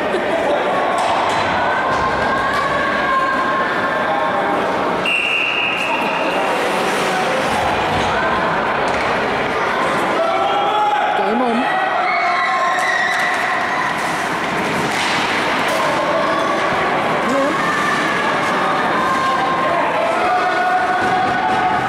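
Skate blades scrape and swish across the ice.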